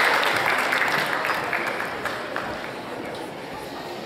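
An audience applauds in a large echoing hall and the clapping fades away.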